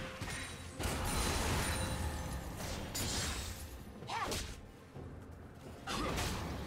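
Video game spells and attacks crackle and burst in a battle.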